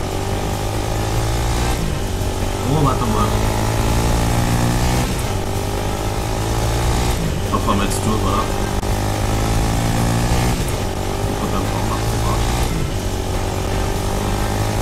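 A small engine hums steadily and revs up and down.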